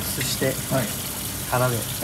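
Water runs from a tap into a metal bowl.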